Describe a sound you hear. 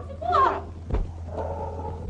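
A young woman screams.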